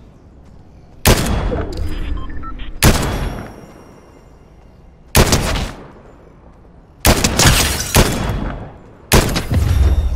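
Sniper rifle shots crack loudly, each followed by a rolling echo.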